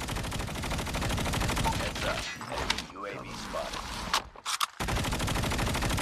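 A heavy machine gun fires in rapid, booming bursts.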